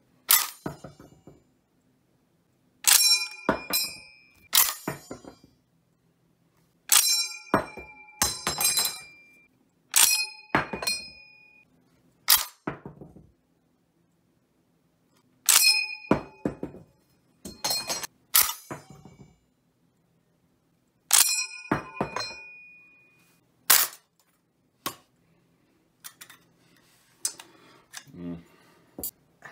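A steel clip drops out of a bolt-action rifle's magazine and lands with a clack onto cloth.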